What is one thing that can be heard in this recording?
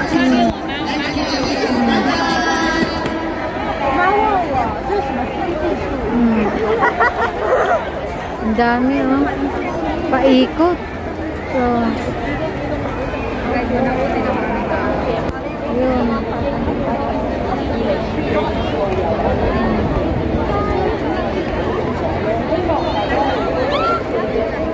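A large crowd of people talks and calls out all around, outdoors.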